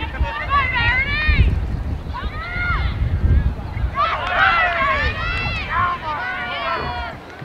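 Young girls shout and call out across an open field.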